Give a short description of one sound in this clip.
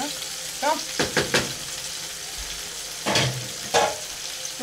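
A metal lid clatters on a pot.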